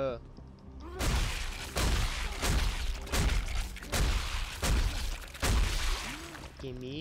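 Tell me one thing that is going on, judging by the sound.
Heavy boots stomp down hard several times.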